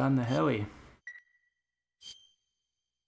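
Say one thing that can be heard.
A game menu gives short electronic chimes.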